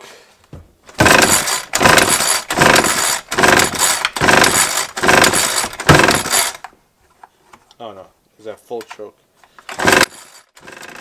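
A pull cord is yanked repeatedly on a small engine.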